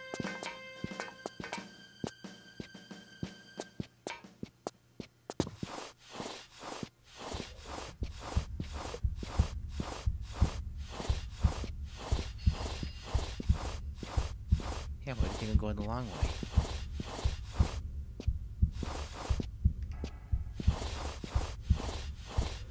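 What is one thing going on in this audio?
A game character's footsteps thud in a quick, steady rhythm.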